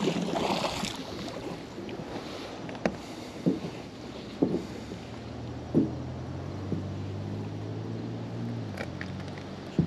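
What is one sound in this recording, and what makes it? Water splashes as a wet rope is hauled out of it.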